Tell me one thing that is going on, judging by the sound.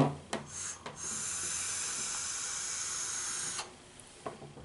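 An electronic vaporizer crackles and hisses steadily.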